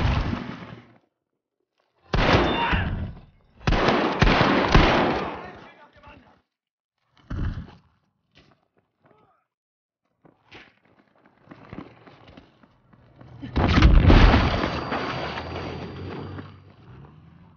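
A shotgun fires loud blasts that echo off rocks.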